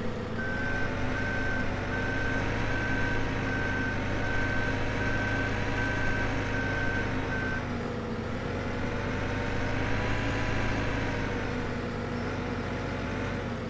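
A loader's diesel engine drones steadily, its pitch rising and falling.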